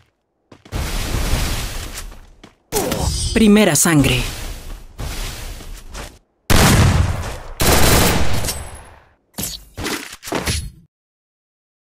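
Loud game sound effects burst and roar in quick succession.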